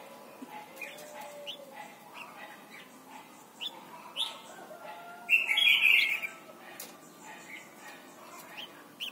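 A caged bird chirps in short, sharp calls, with a louder burst of song midway.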